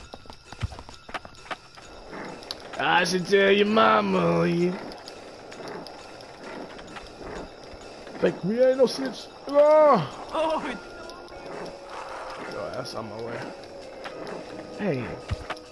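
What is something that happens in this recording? Skateboard wheels roll steadily over pavement.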